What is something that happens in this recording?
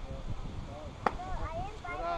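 A metal bat cracks against a baseball.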